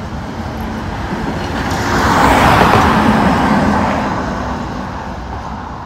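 A tram rumbles past on its rails, growing loud and then fading.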